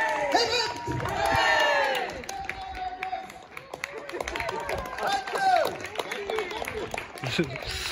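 A crowd of men and women cheers and whoops outdoors, some way off.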